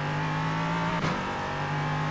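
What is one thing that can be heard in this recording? A gear shift clunks sharply.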